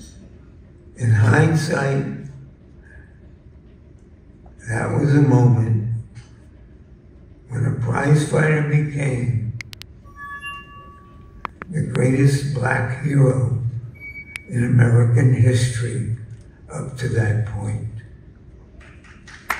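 An elderly man speaks slowly into a microphone over a loudspeaker in a large hall, pausing between phrases.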